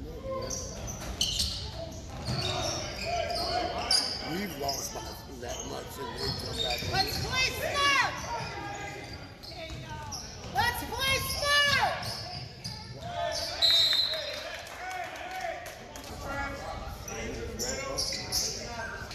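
A basketball thuds as it bounces on the floor.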